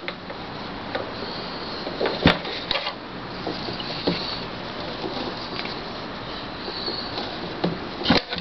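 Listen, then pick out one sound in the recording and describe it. Hands handle a rubber tube and knock against a hard case.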